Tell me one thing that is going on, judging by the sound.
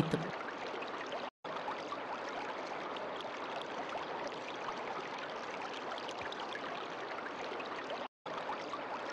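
Water ripples and trickles gently.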